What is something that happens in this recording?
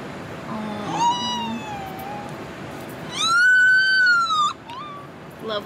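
A newborn baby cries loudly in short wails.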